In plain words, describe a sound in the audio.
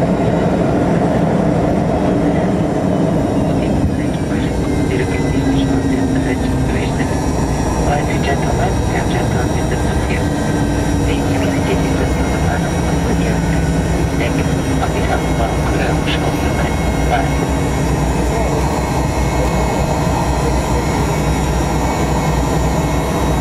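Wheels rumble and thump over the runway.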